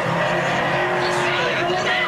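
A young man shouts.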